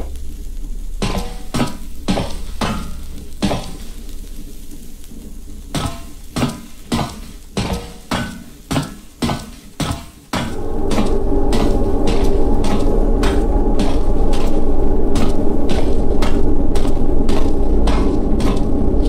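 Footsteps thud steadily on stairs.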